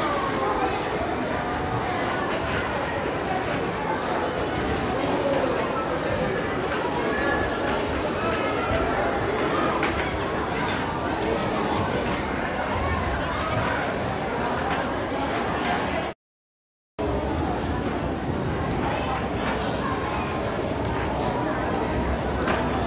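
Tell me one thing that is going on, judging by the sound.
A crowd of adults and children chatters all around in an echoing hall.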